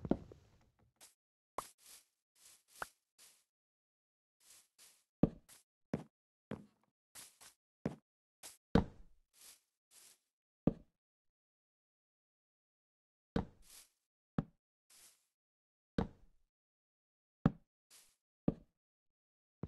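Wooden blocks are placed with short, dull knocks, again and again.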